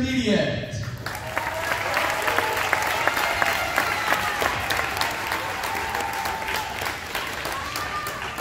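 Marimbas and vibraphones play a ringing melody in a large echoing hall.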